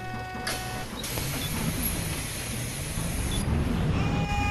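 Bus doors hiss open and shut.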